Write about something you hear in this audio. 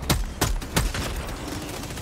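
A rifle fires three rapid shots.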